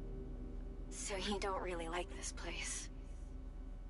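A young woman speaks calmly and playfully.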